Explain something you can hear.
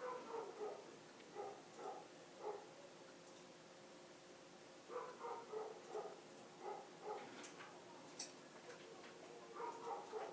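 A small dog's paws pad softly across a cushion.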